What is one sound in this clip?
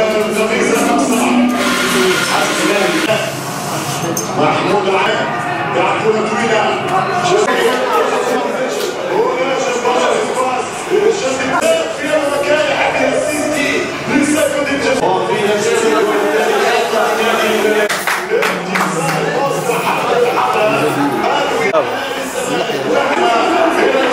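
A crowd of men murmur and chatter in a busy room.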